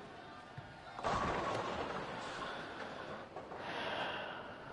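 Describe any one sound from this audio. Bowling pins crash and clatter as the ball strikes them.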